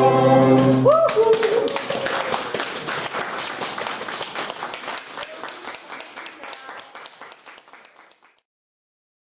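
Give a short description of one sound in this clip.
An audience applauds and slowly fades away.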